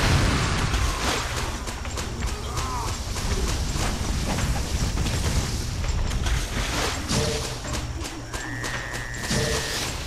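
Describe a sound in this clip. Water splashes as a fighter runs through it.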